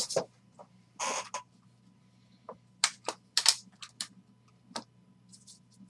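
A plastic wrapper crinkles as cards are handled.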